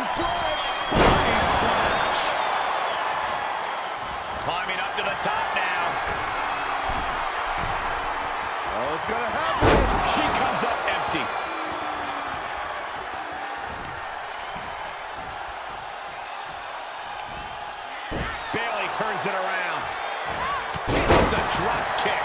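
A wrestler's body slams heavily onto the ring mat.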